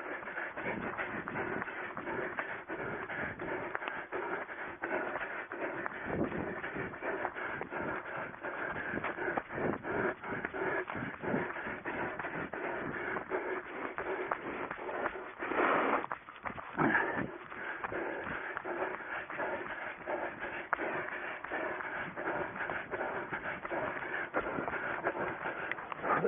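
A runner breathes heavily close by.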